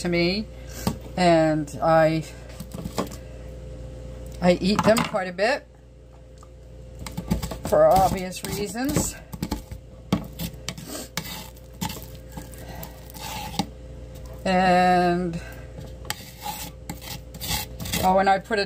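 A metal spoon scrapes soft ice cream against a plastic tub.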